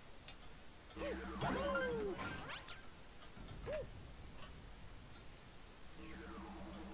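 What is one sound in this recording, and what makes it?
Bright game sound effects chime and swoop.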